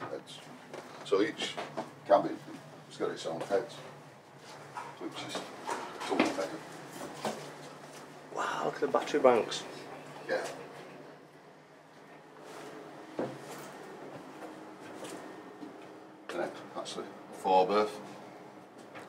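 An elderly man talks calmly close by, in a small echoing space.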